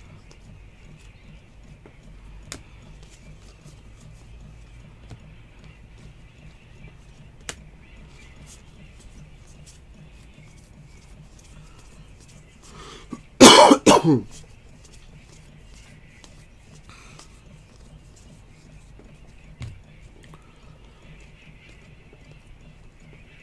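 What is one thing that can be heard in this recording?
Trading cards slide and flick against each other as they are shuffled by hand.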